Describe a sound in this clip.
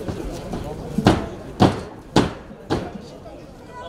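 Punches and kicks thud sharply against training pads.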